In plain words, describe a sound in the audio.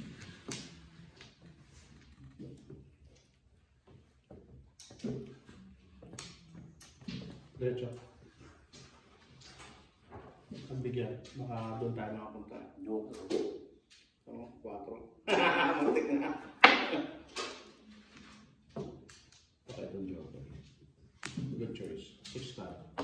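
Mahjong tiles click and clack sharply against each other and a table.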